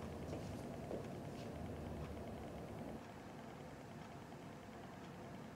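Footsteps shuffle softly on a hard floor.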